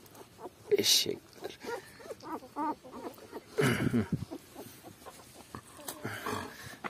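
Puppies suckle with soft wet smacking sounds.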